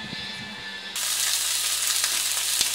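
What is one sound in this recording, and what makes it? Fish sizzles in a hot frying pan.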